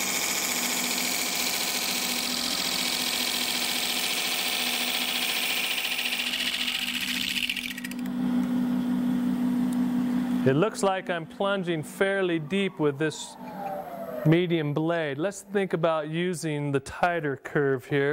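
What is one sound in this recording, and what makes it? A wood lathe spins with a steady motor hum.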